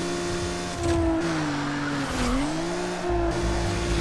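A car scrapes along a wall.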